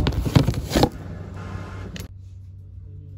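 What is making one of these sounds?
A hand handles a plastic container with crinkling rustles.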